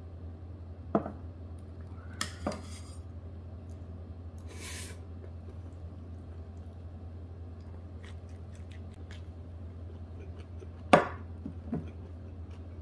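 Chopsticks and a spoon clink against metal bowls.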